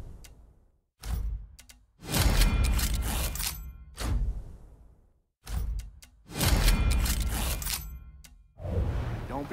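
Game menu selections make sharp whooshing thuds.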